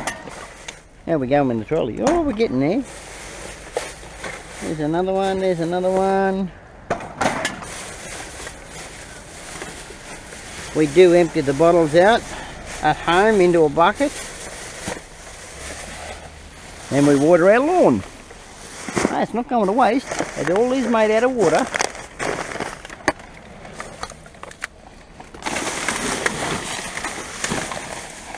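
Plastic bags rustle and crinkle as they are pulled about.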